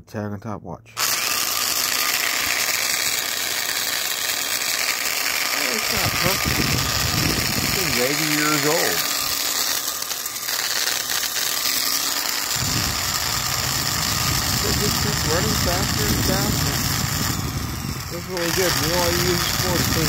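An electric drill motor whirs steadily.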